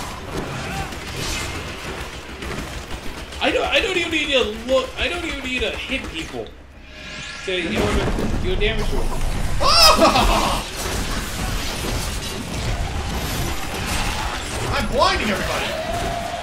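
Fiery magic beams hiss and crackle.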